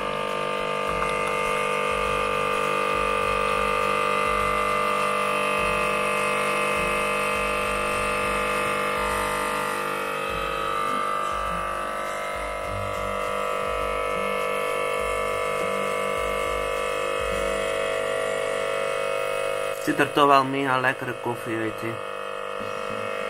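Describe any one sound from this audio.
A coffee machine hums and buzzes steadily.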